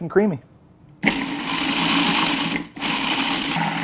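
A food processor whirs loudly as it chops.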